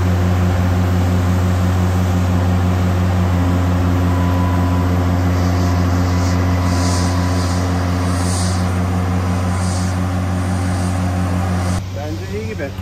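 A large diesel engine hums steadily nearby.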